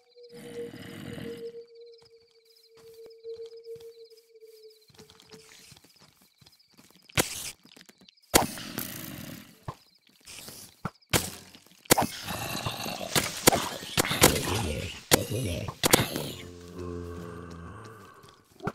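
Zombies groan.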